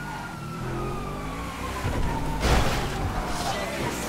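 A car bumps over a kerb.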